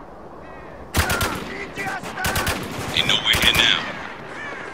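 A rifle fires in loud bursts.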